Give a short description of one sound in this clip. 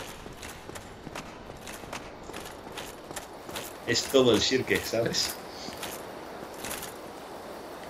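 Armoured footsteps clink steadily on stone.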